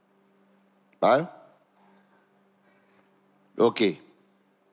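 A man speaks with emphasis through a microphone, in short loud bursts.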